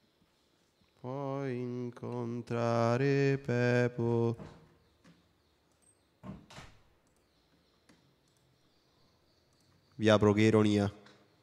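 A man sings into a close microphone.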